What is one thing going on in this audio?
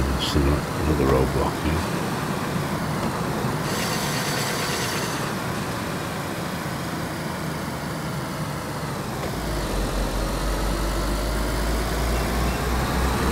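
A car engine hums steadily as the car drives along a road.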